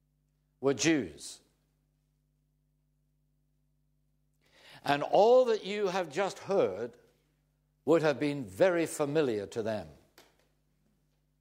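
An elderly man speaks calmly and clearly into a close microphone.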